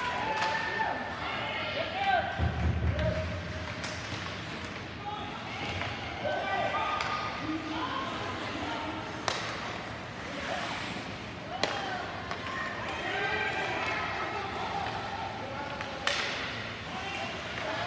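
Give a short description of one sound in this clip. Children and adults call out and chatter in a large echoing rink.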